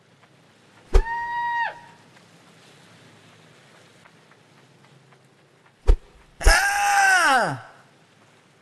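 A dog yelps sharply.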